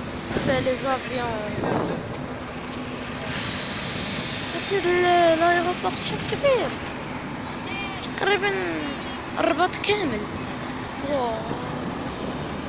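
A young boy talks close by with animation.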